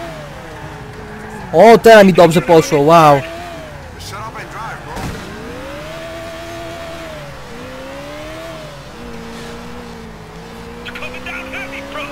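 A car engine hums steadily, its pitch rising and falling as the car drives.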